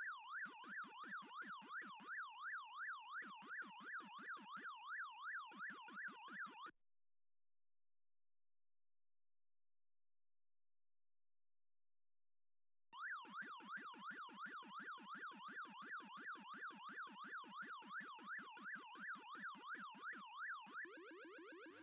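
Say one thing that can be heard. A video game character makes rapid chomping blips.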